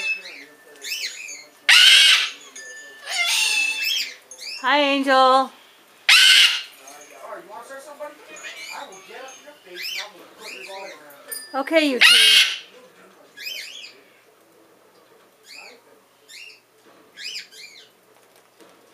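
A cockatoo makes short chirping calls.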